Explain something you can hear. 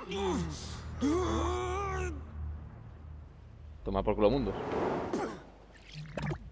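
A young man shouts angrily.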